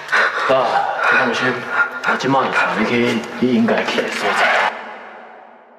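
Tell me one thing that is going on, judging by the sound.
An elderly man speaks in a low, calm voice.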